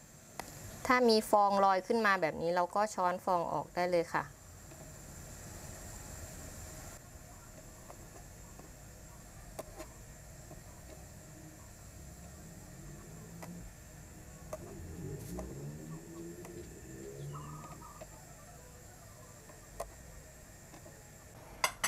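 A metal ladle clinks against a pot.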